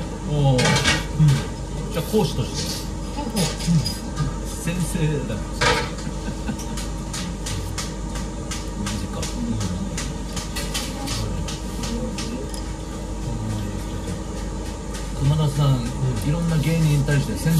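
Chopsticks and spoons clink against bowls.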